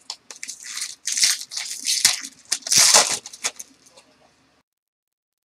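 Foil wrapping crinkles and tears as a pack is opened.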